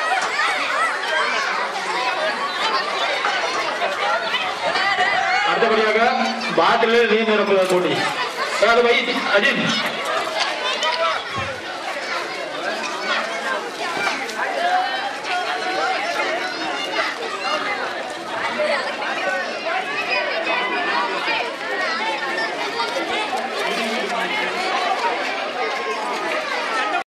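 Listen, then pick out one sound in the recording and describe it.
A crowd of children and adults chatters and shouts outdoors.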